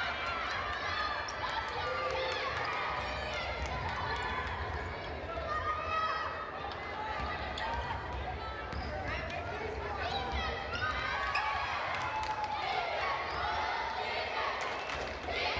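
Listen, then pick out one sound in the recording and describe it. A basketball bounces as it is dribbled.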